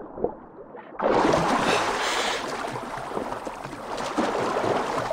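Water splashes loudly as a swimmer breaks the surface.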